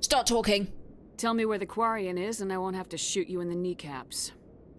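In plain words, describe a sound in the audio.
A woman's voice speaks calmly in game audio.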